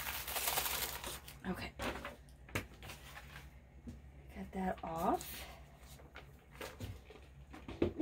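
A plastic sheet crinkles as it is peeled and lifted.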